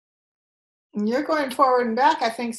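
An elderly woman speaks up close through a microphone.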